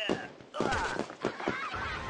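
A loud comic thump sounds.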